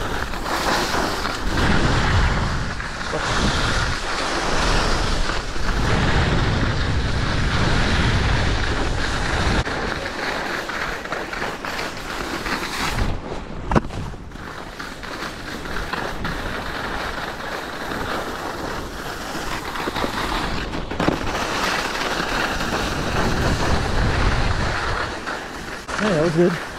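Wind rushes past at speed.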